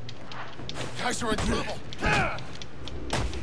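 Men grunt and yell as they are hit.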